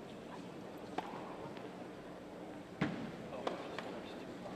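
A tennis ball is struck with a racket in a rally.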